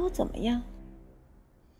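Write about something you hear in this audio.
A young woman speaks sharply and close by.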